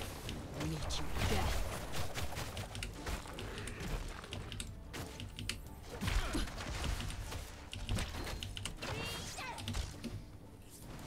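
Game combat effects clash and zap in quick bursts.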